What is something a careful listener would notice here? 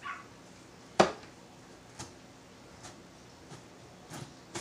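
A knife chops on a cutting board with sharp knocks.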